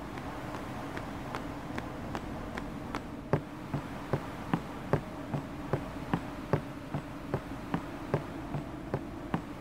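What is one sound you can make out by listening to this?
Footsteps tap steadily on stone as someone walks.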